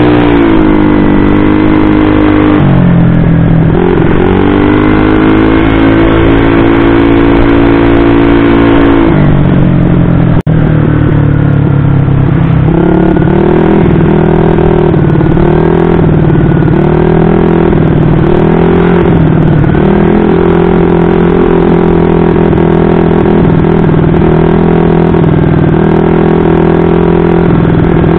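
A bored-up single-cylinder scooter engine revs and eases off while riding.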